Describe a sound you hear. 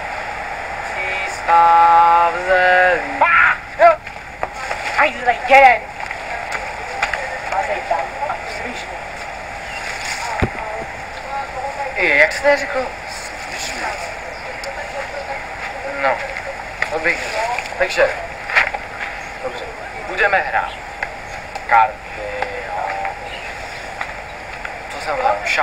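A teenage boy talks with animation, close by, outdoors.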